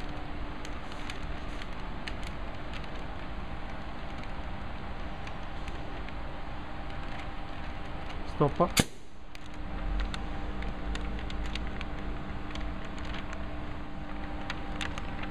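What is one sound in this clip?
A cordless caulking gun's motor whirs as it pushes out sealant.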